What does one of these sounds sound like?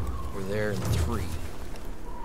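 A man calls out urgently.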